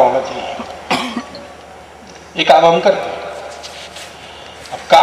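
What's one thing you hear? An elderly man speaks forcefully into a microphone outdoors, his voice echoing through loudspeakers.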